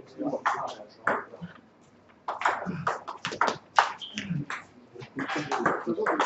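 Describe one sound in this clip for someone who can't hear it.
A table tennis ball clicks back and forth between paddles and table.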